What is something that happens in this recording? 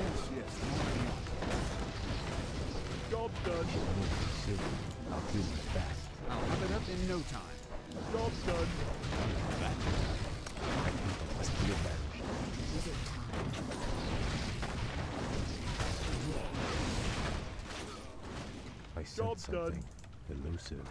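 Game towers fire rapid magical shots.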